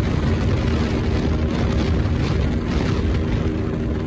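A car whooshes past in the other direction.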